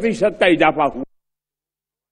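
An elderly man speaks steadily into a microphone.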